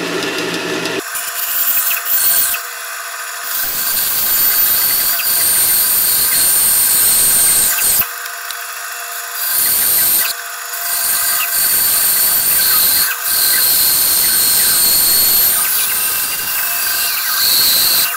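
A band saw cuts through wood with a high whine.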